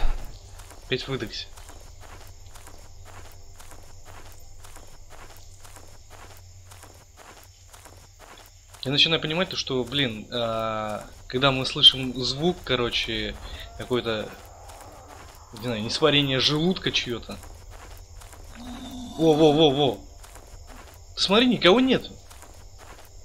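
Footsteps rustle through grass at an even pace.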